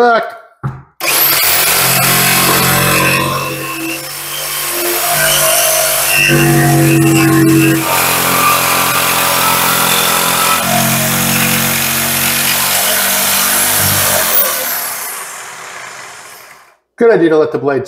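A jigsaw buzzes loudly as it cuts through a countertop.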